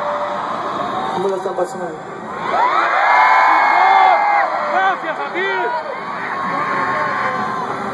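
An electric guitar plays loud, bending notes through amplifiers in a large hall.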